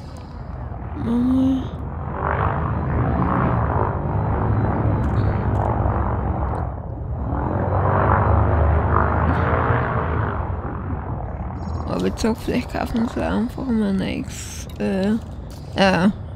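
A spaceship engine hums and roars low as it flies.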